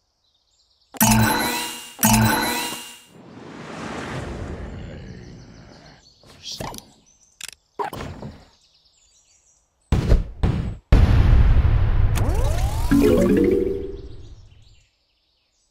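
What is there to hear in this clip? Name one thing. Lively game music plays.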